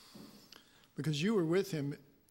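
A man sings a short phrase into a microphone.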